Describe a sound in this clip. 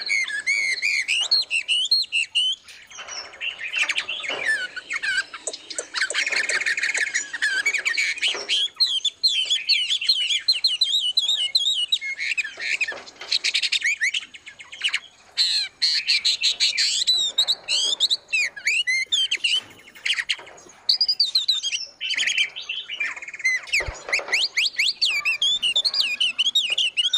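Songbirds chirp and sing busily and close by.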